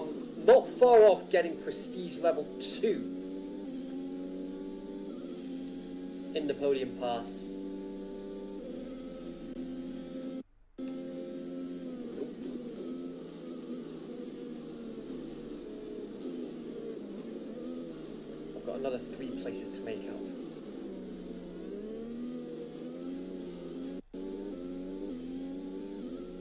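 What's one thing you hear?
A Formula 1 car engine from a racing video game revs up and shifts through the gears.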